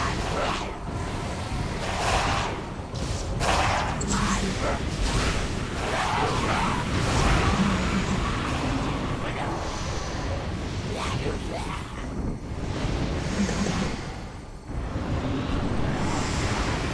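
Magic spells crackle and burst in a fierce fight.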